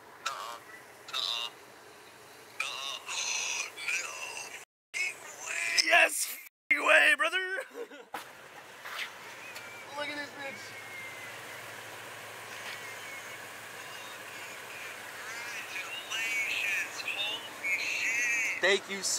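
A man talks through a phone video call.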